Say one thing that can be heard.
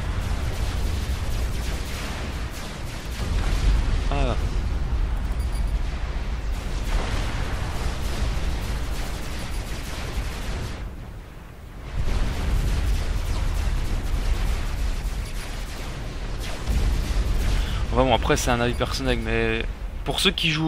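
Game weapons fire and explosions rumble in rapid bursts.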